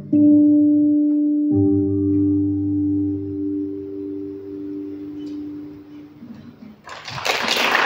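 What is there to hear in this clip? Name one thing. An acoustic guitar plays ringing chords in a large hall.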